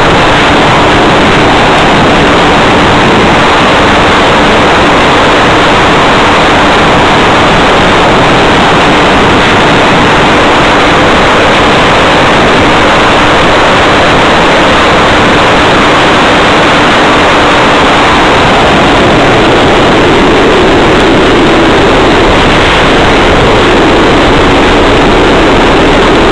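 Wind roars loudly and steadily past a small flying model plane.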